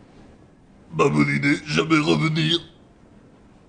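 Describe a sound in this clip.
A young man speaks with animation, up close.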